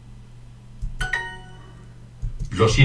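A short bright chime rings out.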